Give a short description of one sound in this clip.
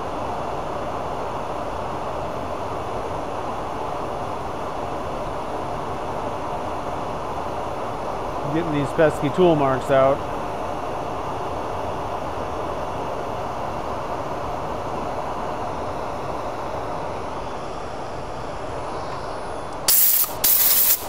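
A lathe motor hums steadily as the spindle spins.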